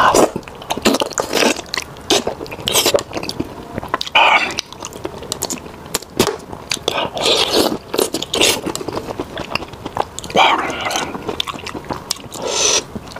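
A man chews food wetly, close to a clip-on microphone.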